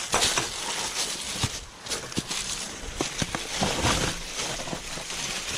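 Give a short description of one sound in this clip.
Tyres crunch over dry leaves and stones on a trail.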